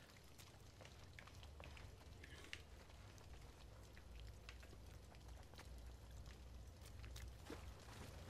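Footsteps crunch softly on gritty ground.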